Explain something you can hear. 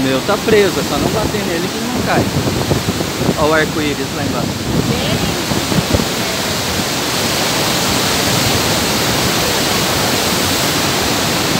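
A powerful waterfall roars and crashes steadily onto rocks close by.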